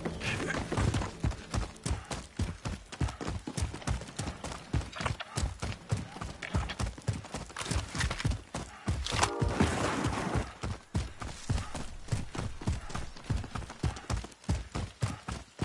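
Quick running footsteps thud over grass and dirt.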